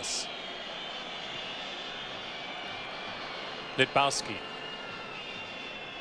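A stadium crowd murmurs steadily outdoors.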